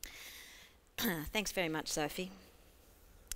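A young woman speaks at a lectern through a microphone.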